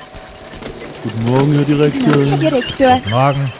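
A man's voice speaks a short, sing-song greeting.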